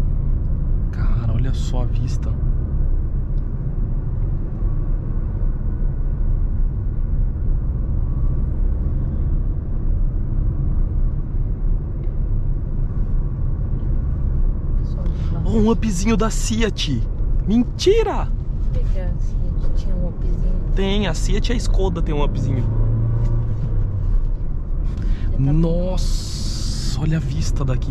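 Car tyres rumble steadily on the road inside a moving car.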